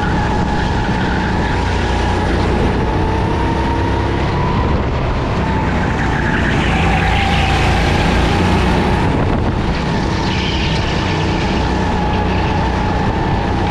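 A kart engine whines loudly up close, rising and falling in pitch.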